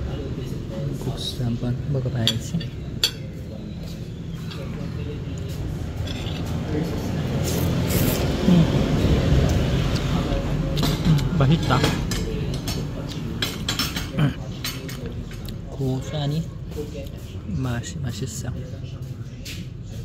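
A metal fork scrapes and clinks against a plate.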